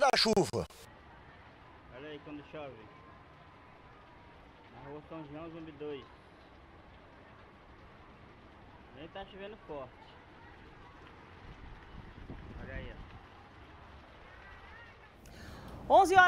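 Rain falls steadily on a flooded street.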